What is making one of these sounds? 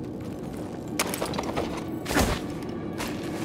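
A body lands with a heavy thud on soft ground.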